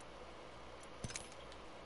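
A menu button clicks.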